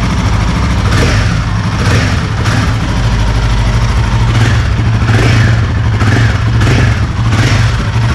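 A motorcycle engine revs in short bursts.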